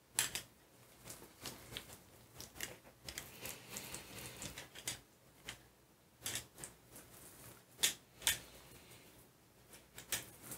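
A rubber roller rolls over a sticky painted surface with a soft tacky crackle.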